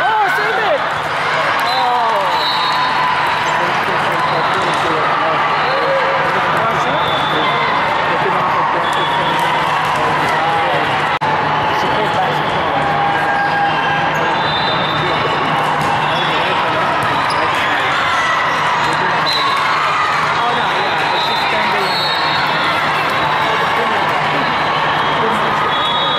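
Many voices of young women and spectators chatter and call out in a large echoing hall.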